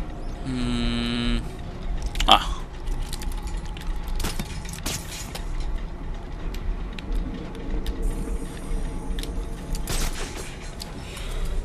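Large metal gears clank and grind.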